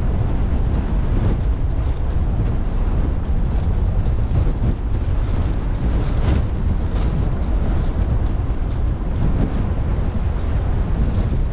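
Water rushes past a ship's bow.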